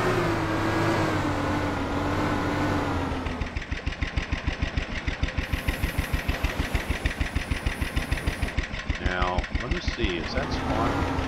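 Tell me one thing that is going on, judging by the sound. A small boat motor hums steadily, then slows to a rapid putter.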